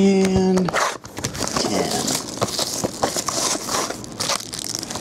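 A foil pack crinkles as it is torn open.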